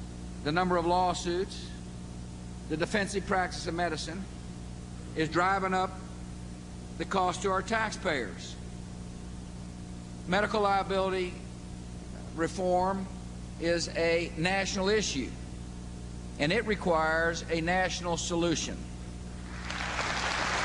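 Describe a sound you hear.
A middle-aged man speaks firmly into a microphone over loudspeakers in a large hall.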